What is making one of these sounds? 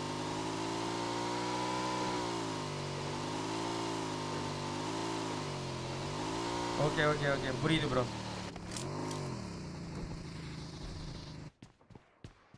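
A motorbike engine hums and rises and falls in pitch as it rides.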